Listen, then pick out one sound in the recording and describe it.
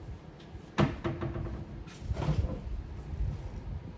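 A refrigerator door is pulled open.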